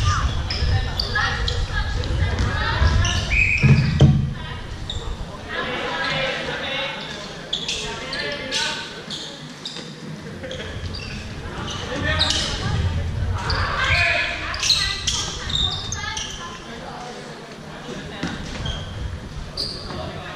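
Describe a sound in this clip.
Young players call out and shout across a large echoing hall.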